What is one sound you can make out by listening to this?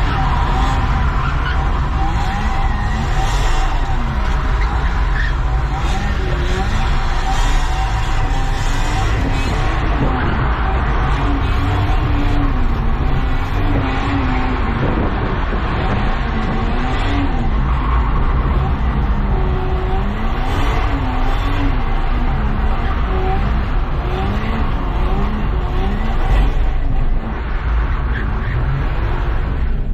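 Tyres hiss over a wet road.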